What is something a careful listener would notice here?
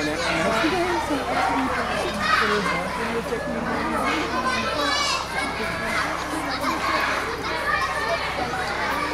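Several adults talk nearby outdoors, their voices overlapping.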